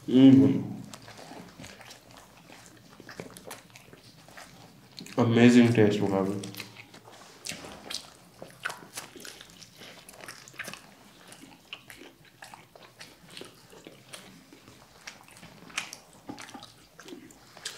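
Two men chew and munch loudly on crispy food close to a microphone.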